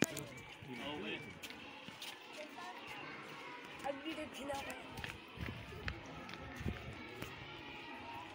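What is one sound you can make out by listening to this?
Footsteps shuffle on a paved path.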